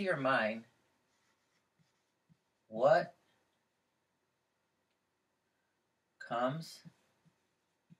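An elderly man speaks calmly in short phrases nearby.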